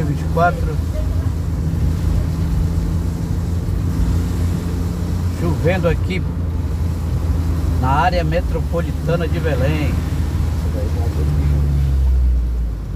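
Tyres hiss on wet asphalt.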